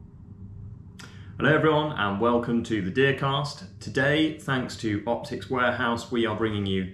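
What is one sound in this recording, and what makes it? A young man speaks calmly and clearly into a close microphone.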